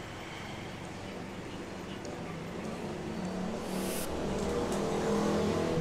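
Metal tools click and scrape against a bicycle wheel rim.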